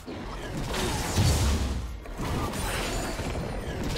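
Magic spells crackle and burst in quick bursts.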